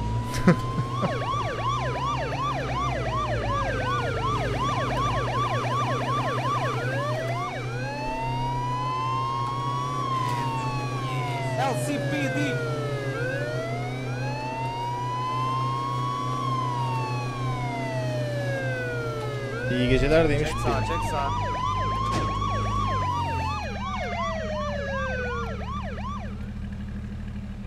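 A police siren wails, rising and falling over and over.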